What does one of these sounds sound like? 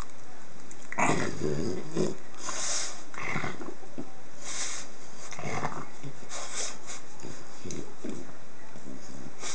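A small dog snorts and grunts.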